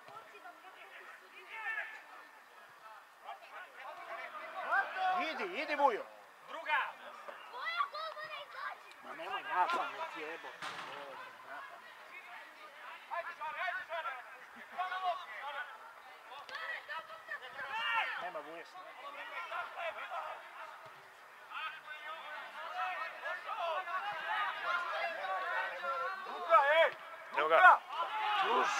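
Football players shout to each other outdoors at a distance.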